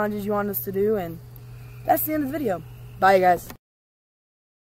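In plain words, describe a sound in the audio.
A boy speaks with animation close to a microphone.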